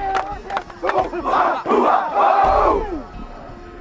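A group of young men lets out a loud cheer.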